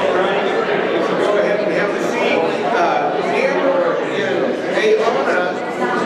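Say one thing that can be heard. An older man speaks into a microphone over loudspeakers.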